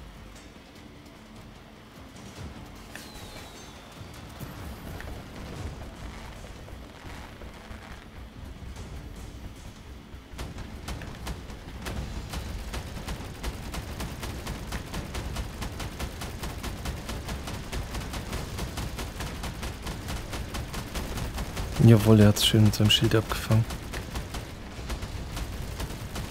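A mechanical walker's engine hums and rumbles.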